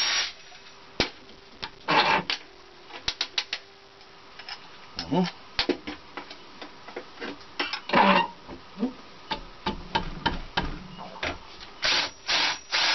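Small metal parts click and clatter on a metal bench.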